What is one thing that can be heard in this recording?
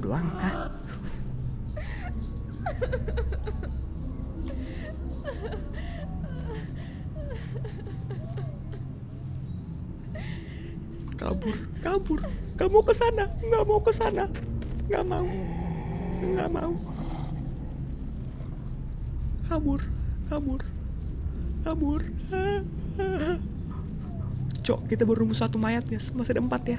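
A young man talks and exclaims with animation close to a microphone.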